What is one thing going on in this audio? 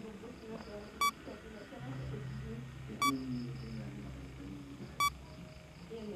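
A short electronic beep sounds every two seconds.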